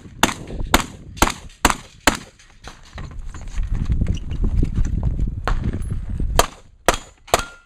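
A handgun fires a rapid string of loud sharp shots outdoors.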